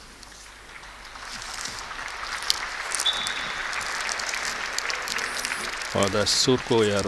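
A large crowd applauds and cheers in an open stadium.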